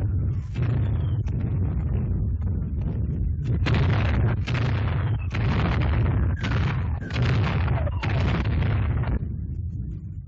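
Shells explode nearby with loud blasts.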